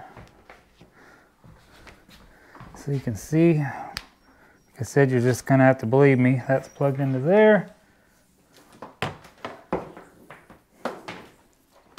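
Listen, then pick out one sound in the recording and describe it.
A cord rustles and knocks as a man handles it.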